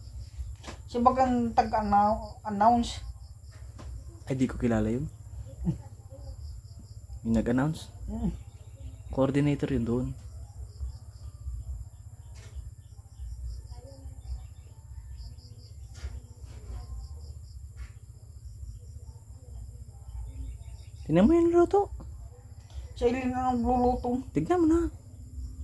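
A middle-aged woman speaks calmly and close by, in short bursts.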